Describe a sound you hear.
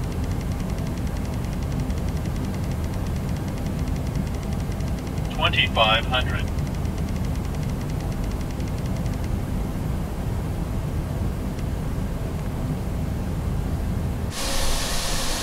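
Twinjet airliner engines hum low and muffled inside the cockpit in flight.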